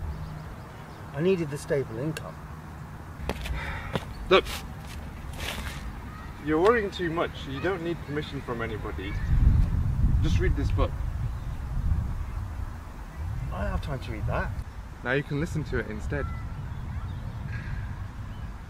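A man talks calmly nearby outdoors.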